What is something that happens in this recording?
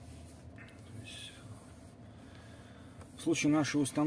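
A fingertip taps lightly on a touchscreen.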